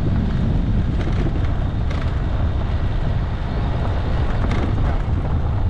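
Gravel knocks against the underside of a vehicle now and then.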